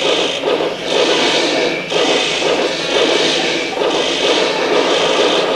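Explosions boom and crackle in a video game.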